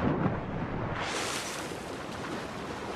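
A body plunges into water with a heavy splash.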